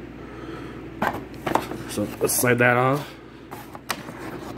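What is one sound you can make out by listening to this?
Cardboard packaging rustles and knocks as it is handled up close.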